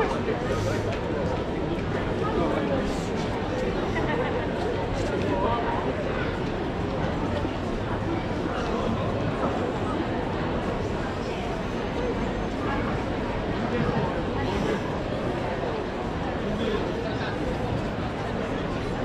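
Footsteps tap on a wet street outdoors.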